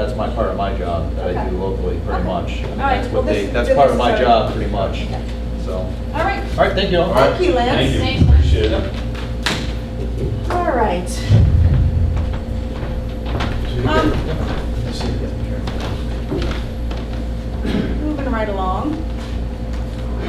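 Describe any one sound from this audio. A man talks calmly in a room with a slight echo.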